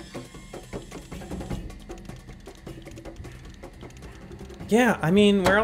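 A ratchet wrench clicks as it turns.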